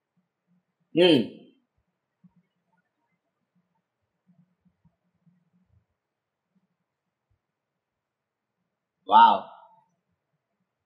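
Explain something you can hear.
A young man makes a short, quiet vocal sound close by.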